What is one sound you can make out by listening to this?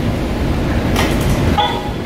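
Heavy dumbbells clank as they are lowered.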